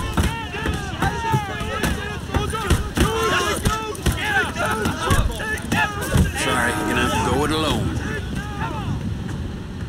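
Men shout angrily at each other up close.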